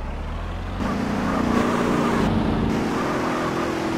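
Car tyres screech on the road.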